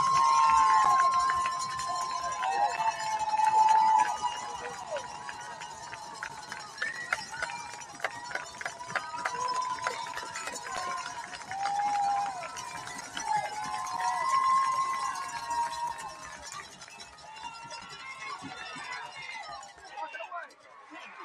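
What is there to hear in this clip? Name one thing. Young men on a sideline shout and call out.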